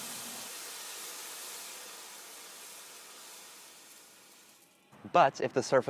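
Water sizzles and hisses on a hot pan, fading away.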